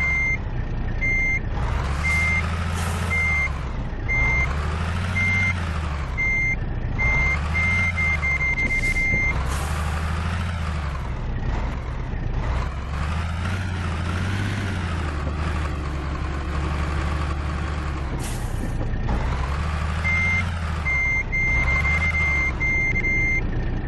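A truck engine revs up and down over and over.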